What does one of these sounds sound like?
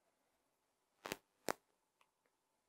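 A pen taps against a board.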